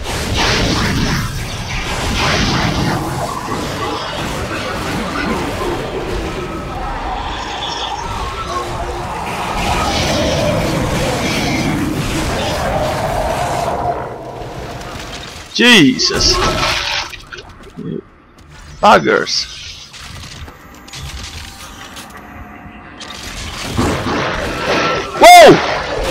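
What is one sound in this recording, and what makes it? A monster shrieks and snarls up close.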